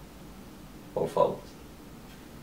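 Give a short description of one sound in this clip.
Another young man talks briefly in reply.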